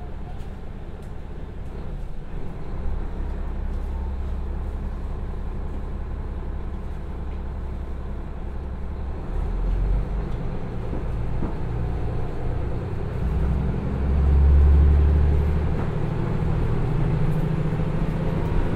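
A diesel engine rumbles steadily and revs up louder as a train pulls away.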